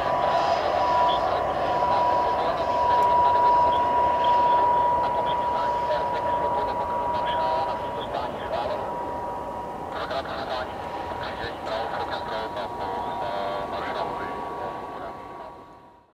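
A jet engine whines steadily as a plane taxis nearby, slowly fading.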